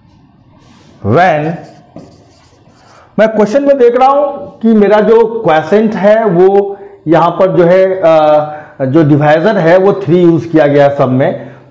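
A man speaks clearly and steadily into a close microphone, explaining.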